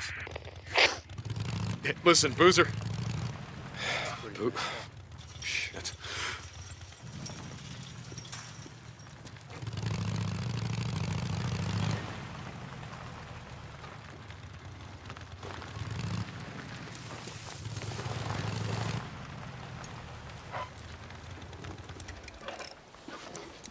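A motorcycle engine rumbles and revs up and down as it rides slowly.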